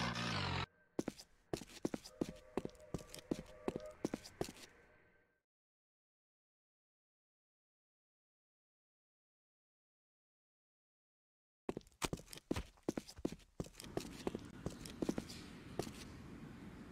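Quick footsteps patter and echo through a narrow pipe.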